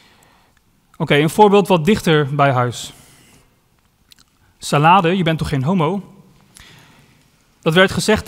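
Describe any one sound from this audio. A young man speaks calmly into a microphone in a large echoing hall.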